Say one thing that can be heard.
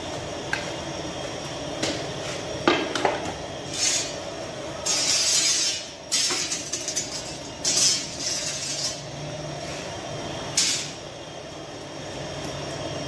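A wooden peel knocks and scrapes against the brick of an oven.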